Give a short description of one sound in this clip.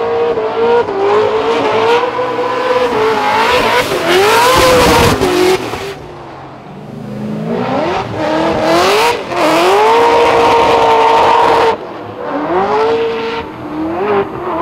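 Tyres screech as cars slide sideways.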